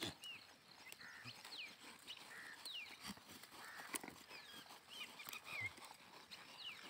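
Goats tear at grass and chew close by.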